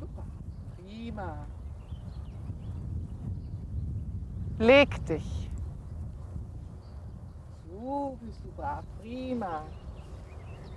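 An elderly woman gives short, firm commands to a dog outdoors.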